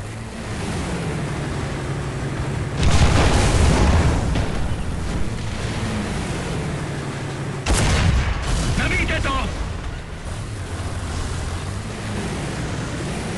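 A tank engine rumbles and drones steadily.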